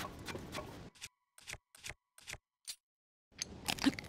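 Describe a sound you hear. Soft clicks tick quickly in a row.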